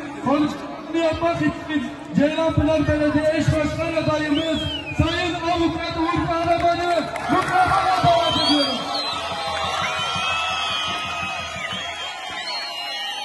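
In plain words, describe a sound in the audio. A large crowd chants and cheers loudly outdoors.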